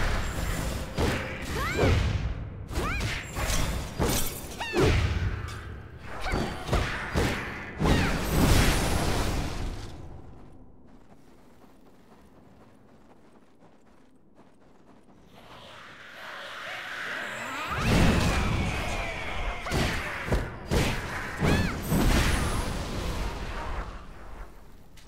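Blades slash and clang in a fast game fight.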